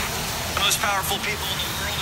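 A man talks through a small phone speaker.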